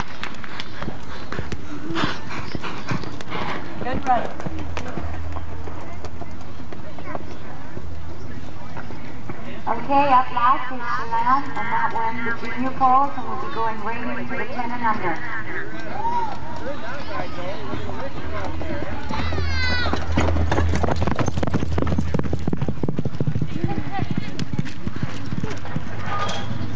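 A horse gallops over soft dirt.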